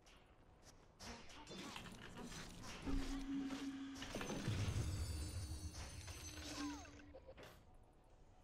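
Game spell effects crackle and boom.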